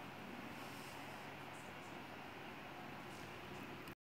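A man exhales a long breath of vapour close by.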